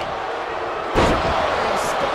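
A heavy body slams onto a wrestling mat with a loud thud.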